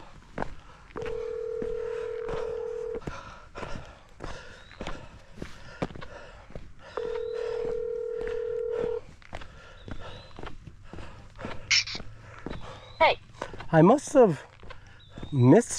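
Footsteps crunch steadily on a dirt trail.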